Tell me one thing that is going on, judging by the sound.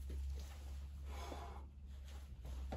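A climber grunts and breathes hard with effort.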